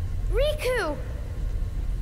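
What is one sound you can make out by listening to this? A young woman speaks urgently.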